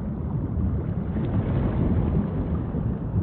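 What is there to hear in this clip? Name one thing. A whale blows out a spout of air with a rushing whoosh.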